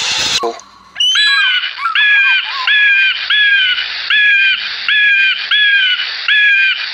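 An eagle gives a series of shrill, high, repeated calls, evenly spaced.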